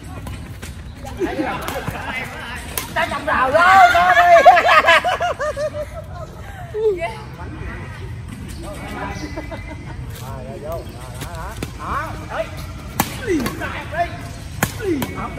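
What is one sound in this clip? Young adults shout and laugh with animation outdoors.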